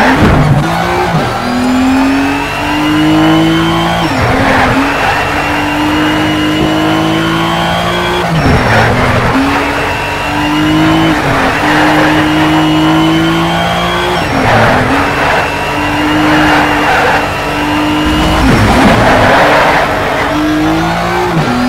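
A racing car engine roars loudly, rising in pitch through each gear and dropping sharply at each gear change.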